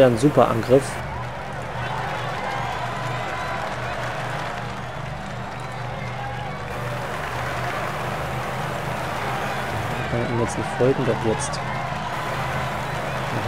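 A crowd cheers along the roadside.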